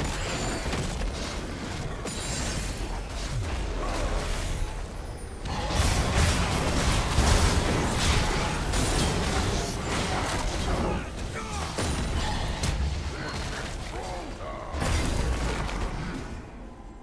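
Spell effects and weapon clashes burst and crackle in a busy game fight.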